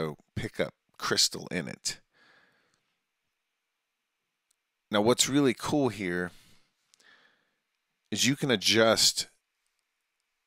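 A middle-aged man talks calmly and closely into a microphone.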